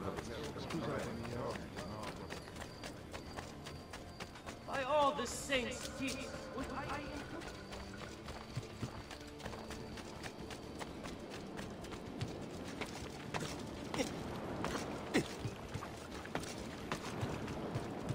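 Quick footsteps run over stone and wooden boards.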